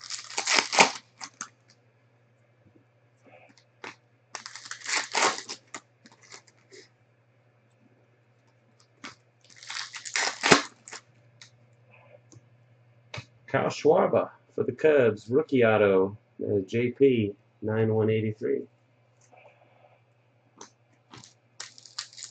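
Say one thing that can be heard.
Plastic wrappers crinkle and tear in quick bursts.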